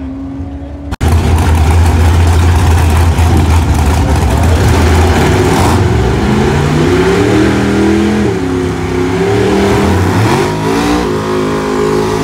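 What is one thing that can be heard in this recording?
A drag car engine idles close by with a loud, deep rumble.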